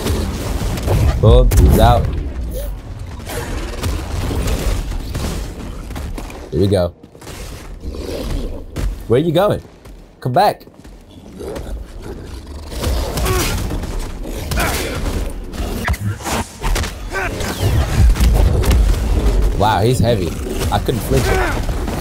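A large beast snarls and roars.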